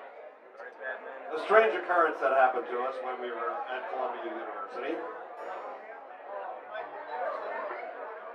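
A guitar is strummed.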